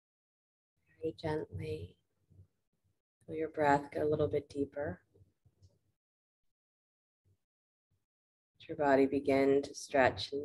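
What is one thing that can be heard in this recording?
A woman speaks calmly close by, in short bursts.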